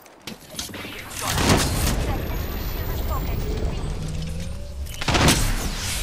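A shield battery charges with a rising electronic hum.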